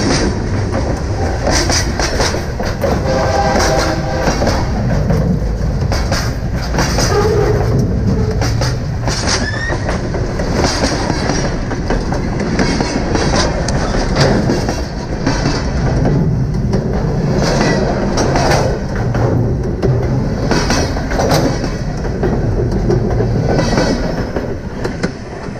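Steel wheels clatter and click rhythmically over rail joints.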